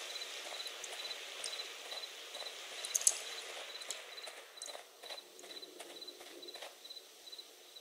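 Footsteps walk on stone.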